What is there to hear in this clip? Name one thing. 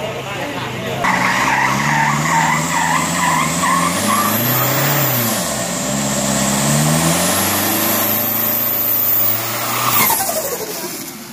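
Tyres screech and spin on pavement.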